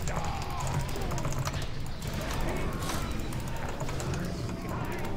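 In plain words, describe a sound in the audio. Video game battle sounds clash, with spells and weapon hits crackling.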